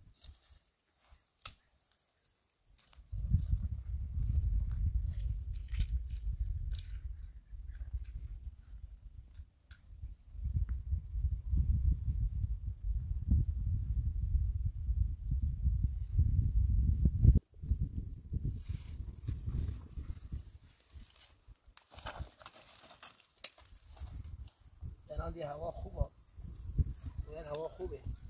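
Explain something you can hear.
Dry twigs rustle and snap.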